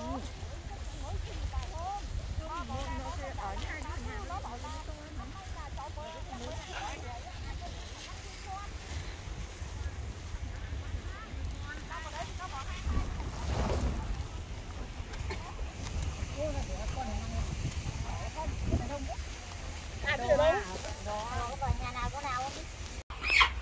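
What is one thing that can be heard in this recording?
Women talk with each other nearby, outdoors.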